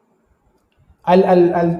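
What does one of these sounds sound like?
A man speaks calmly into a microphone over an online call.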